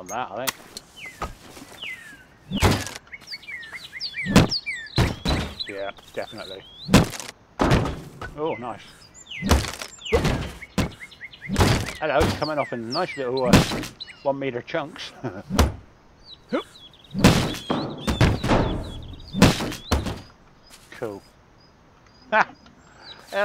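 Wooden boards clatter and crack as they break.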